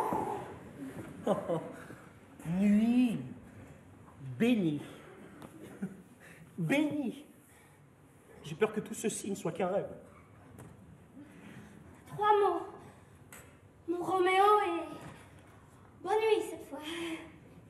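A man sings in a strong operatic voice, in short phrases with pauses, in a large hall.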